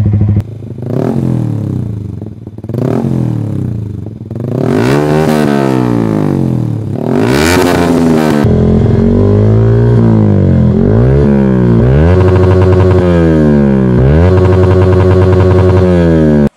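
A motorcycle engine revs up and down repeatedly, loud and close.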